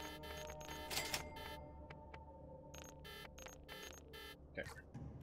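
Short electronic menu tones chime in quick bursts.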